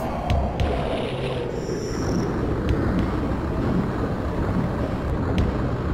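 Heavy blows thud as a creature is struck.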